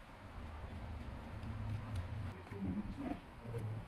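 Fingers brush loose sand away.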